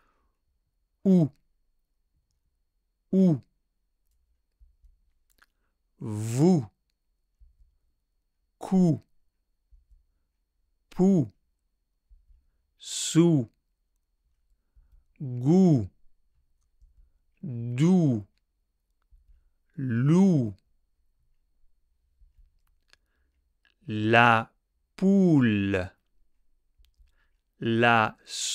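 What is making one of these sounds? A man says short syllables slowly and clearly into a close microphone, pausing between each.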